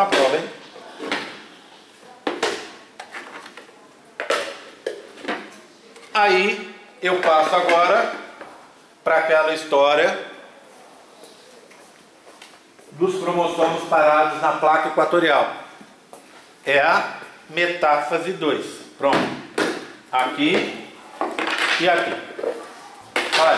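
A middle-aged man speaks calmly and clearly nearby.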